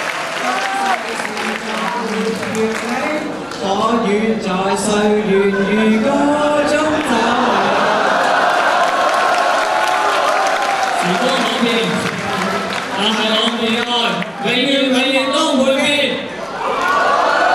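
A teenage boy speaks with animation through a microphone and loudspeakers in a large echoing hall.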